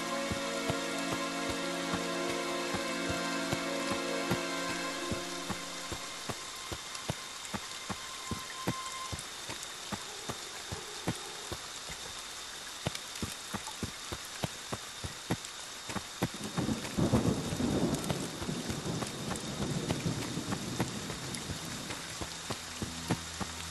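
Footsteps crunch through leaves and undergrowth at a steady walking pace.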